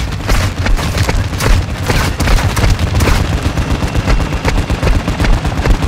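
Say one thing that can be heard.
Heavy blows thud in a close scuffle.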